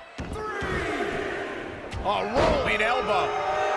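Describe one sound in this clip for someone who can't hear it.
A wrestler's body thuds onto the ring mat.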